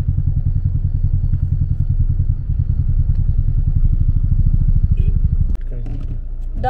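A car engine idles with a low steady rumble.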